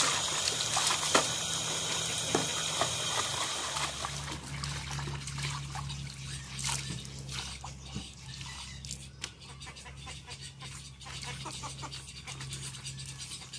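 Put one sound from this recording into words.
Water splashes as clothes are rinsed in a bucket.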